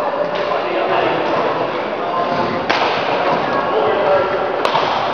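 People chatter in the background of an echoing hall.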